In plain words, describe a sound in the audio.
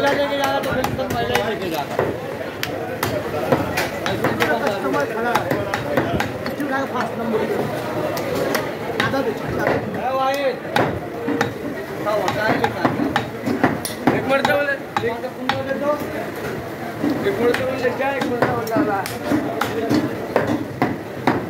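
A heavy cleaver chops through meat and bone onto a wooden block with sharp, repeated thuds.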